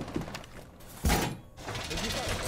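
A heavy metal panel scrapes and clanks as it is set against a wall.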